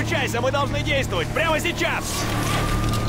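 A man shouts urgently over a radio.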